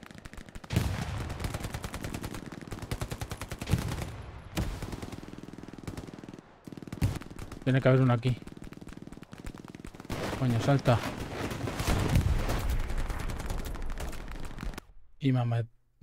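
Rapid gunfire bursts loudly, close by.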